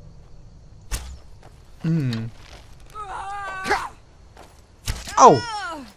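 A bow string snaps as an arrow is shot.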